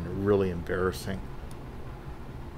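Metal tweezers tick faintly against a watch movement.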